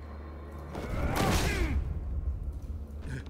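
A body slams heavily onto a hard floor.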